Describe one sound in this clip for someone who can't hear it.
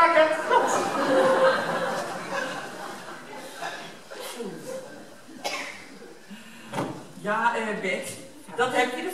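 An elderly woman speaks with animation from a stage, heard from a distance in a large hall.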